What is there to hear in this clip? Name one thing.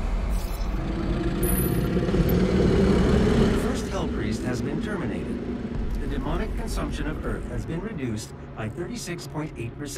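A huge beast roars with a deep, rumbling growl.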